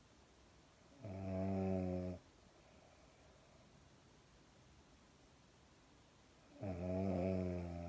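A dog snores loudly up close.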